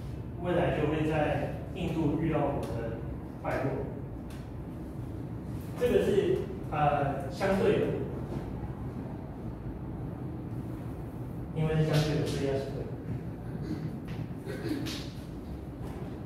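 A young man speaks calmly to a room, heard through a microphone with some echo.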